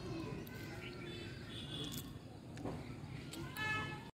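A young girl crunches on chips.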